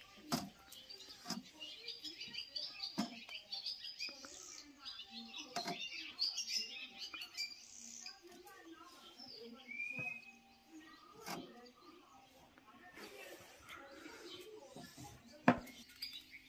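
Mushrooms knock softly against a tray.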